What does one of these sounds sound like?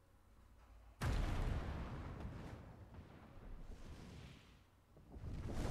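A huge dragon roars loudly.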